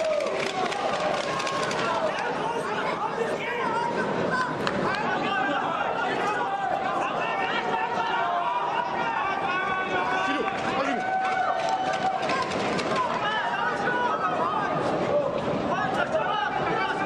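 A large crowd cheers, shouts and whistles loudly in a big echoing arena.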